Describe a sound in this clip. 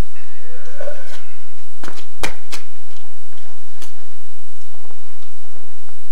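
Footsteps scuff on hard ground and move away.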